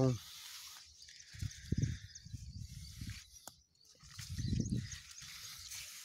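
Leaves rustle as a hand brushes through plants.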